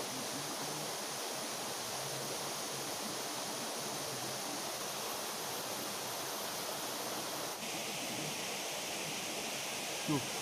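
A small waterfall rushes steadily nearby.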